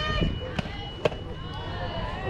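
A ball smacks into a catcher's mitt.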